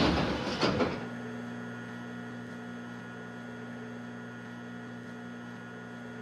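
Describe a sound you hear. An electric train's motor hums steadily as the train rolls along.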